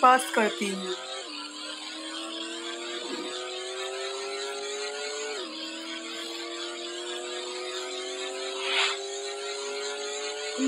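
A car engine revs up steadily, dropping in pitch briefly at each gear change.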